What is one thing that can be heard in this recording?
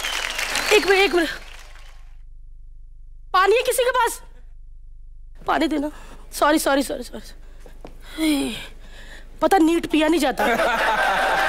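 A woman speaks animatedly through a microphone.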